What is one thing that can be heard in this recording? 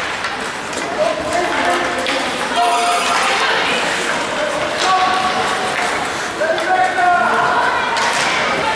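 Adult spectators call out and cheer from the stands.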